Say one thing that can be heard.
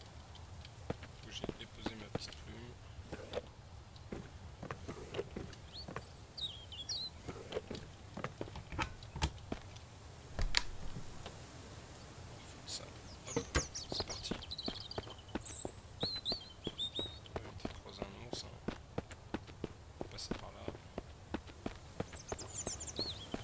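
Footsteps tread steadily across the ground.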